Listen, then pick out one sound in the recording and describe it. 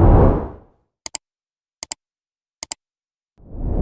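A computer mouse clicks several times in quick pairs.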